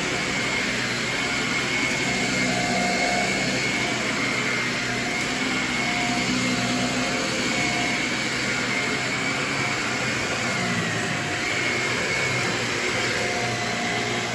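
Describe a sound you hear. A vacuum cleaner whirs steadily with a high whine.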